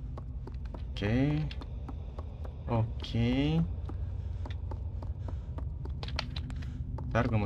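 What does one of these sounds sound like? A young man speaks close to a microphone, with animated, drawn-out exclamations.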